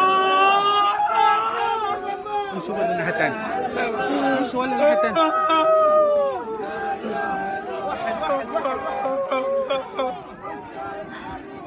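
A young man wails and sobs loudly close by.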